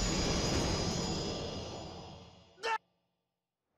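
A man lands a heavy kick with a thud.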